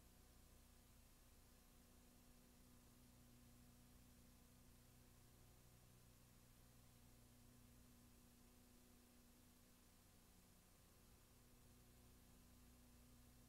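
Television static hisses steadily.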